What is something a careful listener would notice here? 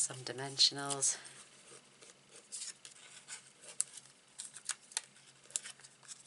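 A small tool rubs and scratches lightly on paper.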